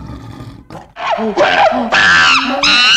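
A monkey shrieks loudly.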